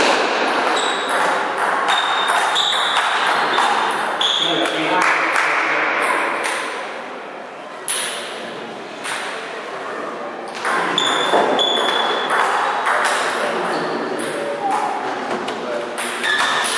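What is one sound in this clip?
A table tennis ball clicks back and forth between paddles and the table in a rapid rally.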